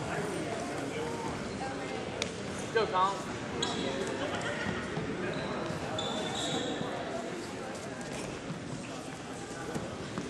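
Feet shuffle and thump on a wrestling mat.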